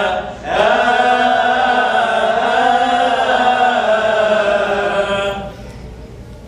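Men chant loudly together through a microphone in an echoing hall.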